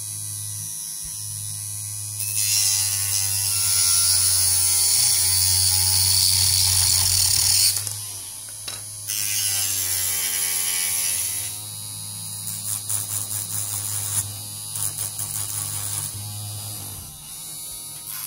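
A small rotary tool whirs steadily at high speed.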